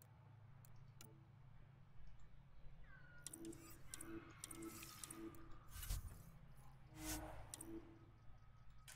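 Short electronic menu beeps chime in quick succession.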